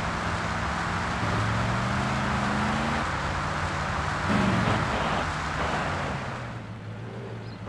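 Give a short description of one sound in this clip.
A car engine roars as it speeds along.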